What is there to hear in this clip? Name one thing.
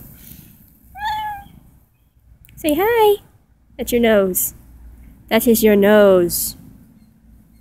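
A cat meows close by.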